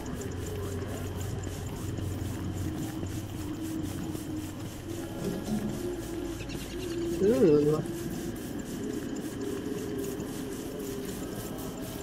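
Soft footsteps patter on dirt.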